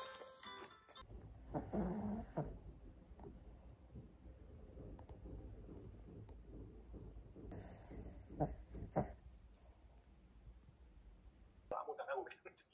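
A small dog snores softly while sleeping.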